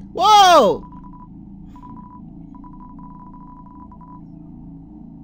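Short electronic blips chirp as a video game's dialogue text types out.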